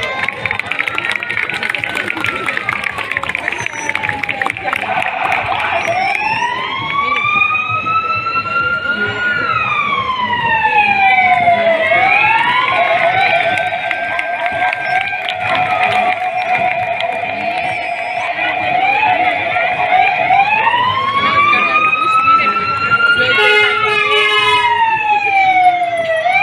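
A siren wails loudly, rising and falling over and over.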